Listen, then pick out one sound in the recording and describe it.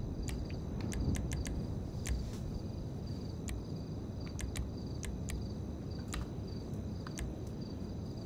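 Soft menu clicks tick as a selection moves up and down.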